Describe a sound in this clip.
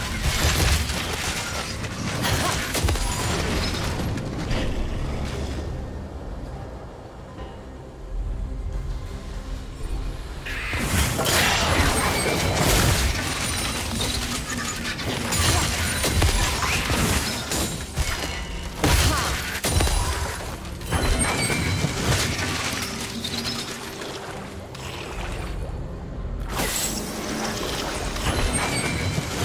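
Magic spells crackle and boom.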